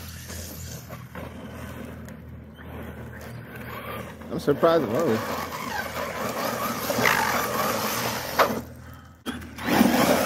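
Small tyres rumble over rough pavement.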